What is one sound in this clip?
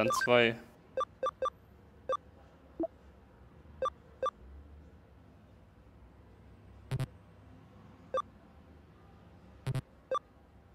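Short electronic menu blips chime as selections change.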